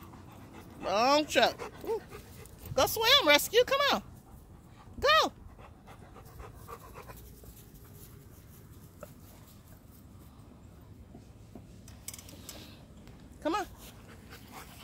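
A dog barks and yelps nearby.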